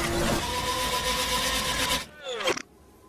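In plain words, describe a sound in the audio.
A hair dryer blows with a loud, steady roar, then cuts off.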